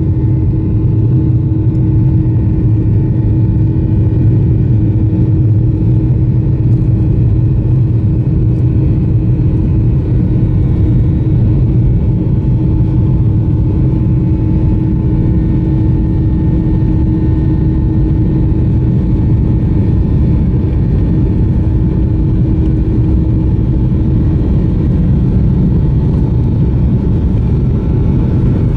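A plane's wheels rumble over the taxiway.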